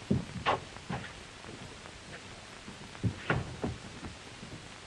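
Boots thud on a wooden floor.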